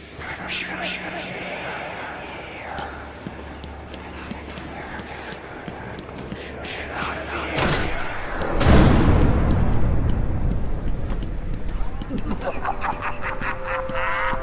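Footsteps fall on a tiled floor.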